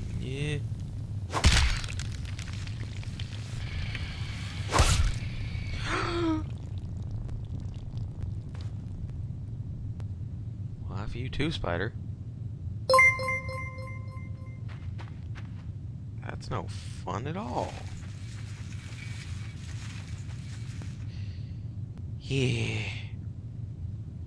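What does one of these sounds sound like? A young man talks with animation close to a headset microphone.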